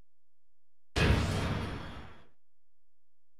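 A short game menu sound effect plays and fades.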